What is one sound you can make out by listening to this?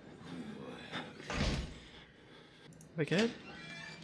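A metal locker door creaks open.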